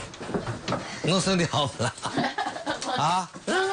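A woman laughs and talks excitedly.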